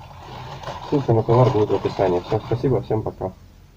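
Plastic wrapping crinkles as it is unwrapped.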